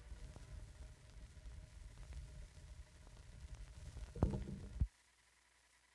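A record stylus rumbles and crackles in the groove of a spinning vinyl record.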